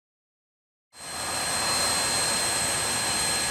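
A steam locomotive idles with a low hiss.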